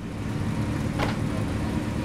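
A car bonnet slams shut.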